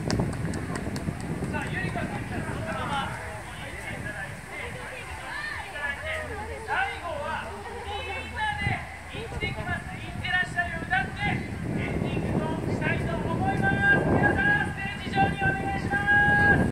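A young man speaks with animation through a microphone and loudspeakers outdoors.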